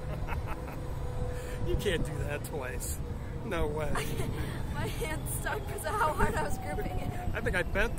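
A middle-aged man laughs close by.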